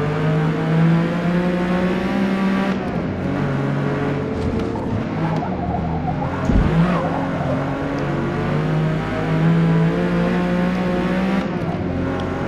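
A racing car engine roars, revving up and down through gear changes.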